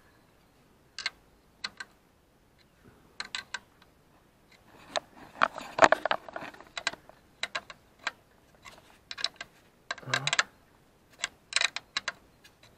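A metal tool clicks and taps against engine parts.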